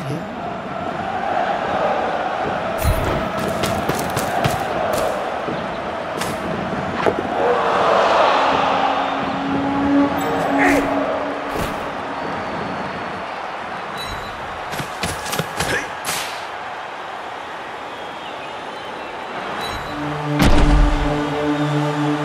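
A large crowd roars in a stadium.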